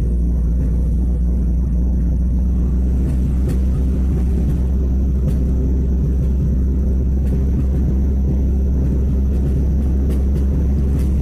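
A car engine hums steadily from inside the cabin while driving.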